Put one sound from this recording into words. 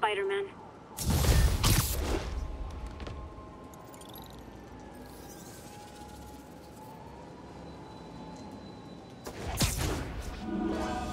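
A loud whoosh of rushing air sweeps past.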